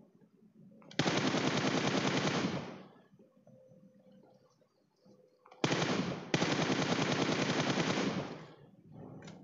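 An automatic rifle fires in long, loud bursts.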